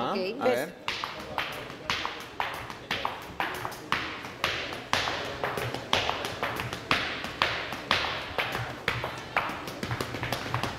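Hard shoes stamp and tap in a steady rhythm.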